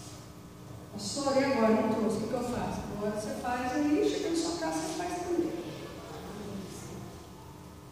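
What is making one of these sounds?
A middle-aged woman speaks calmly into a microphone, heard through loudspeakers in an echoing hall.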